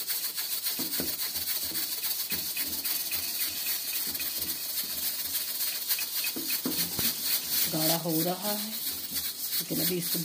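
A wooden spoon scrapes and stirs inside a metal pot.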